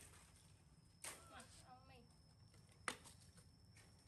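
A stick of firewood knocks against a woodpile.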